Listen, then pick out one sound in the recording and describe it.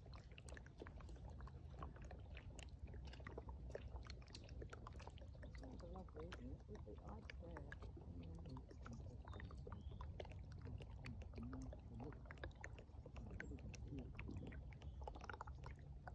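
Air bubbles pop and burble under the ice.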